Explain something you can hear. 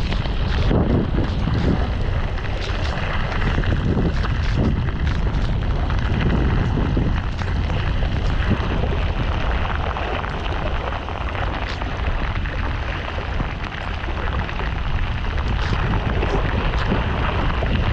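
A paraglider wing flaps and rustles in the wind.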